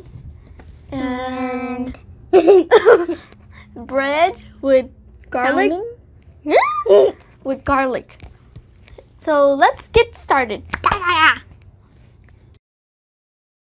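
A young girl talks cheerfully up close.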